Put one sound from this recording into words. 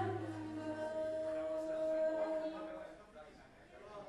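A young woman sings a long held note through a microphone.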